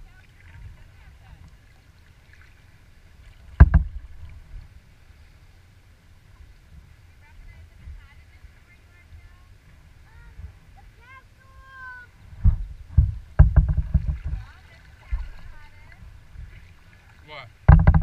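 Water laps and splashes against a kayak's hull.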